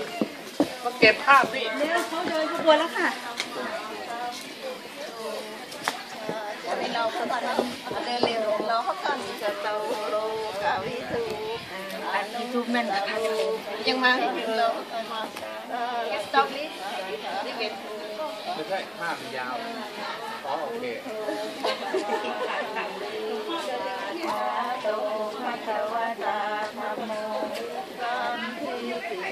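Several women talk quietly nearby, outdoors.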